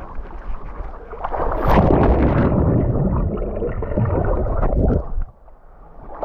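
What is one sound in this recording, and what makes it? Water rumbles and gurgles close by, as if heard from underwater.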